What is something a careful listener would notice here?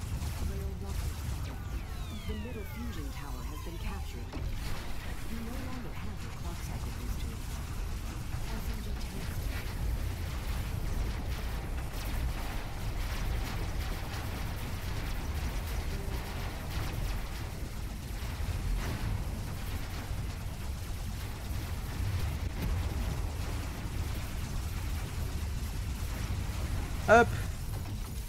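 Energy weapons fire with zapping bursts.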